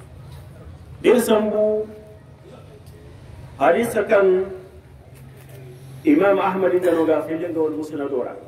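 A man chants loudly through a microphone in short bursts with pauses between.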